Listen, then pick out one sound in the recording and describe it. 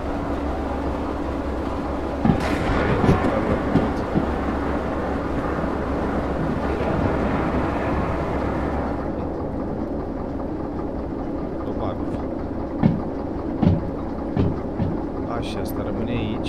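A locomotive engine rumbles steadily.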